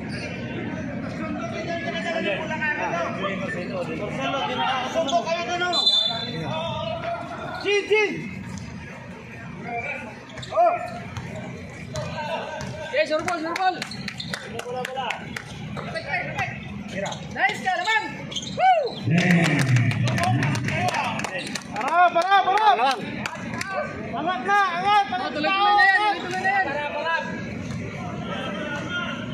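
Spectators nearby talk and shout with excitement outdoors.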